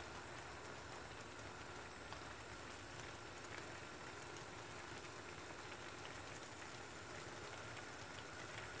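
Thick blackberry jam bubbles and pops as it simmers in a steel pot.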